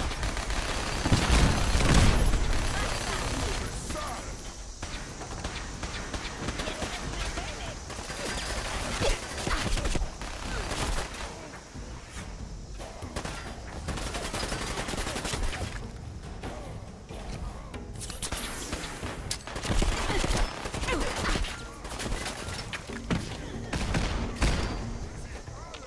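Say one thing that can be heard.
A rotary machine gun fires in rapid bursts.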